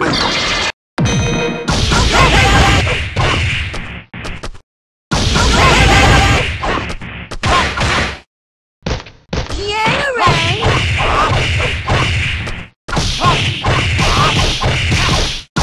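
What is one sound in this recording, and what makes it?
Punches, kicks and blasts thud and crackle in a fast fight.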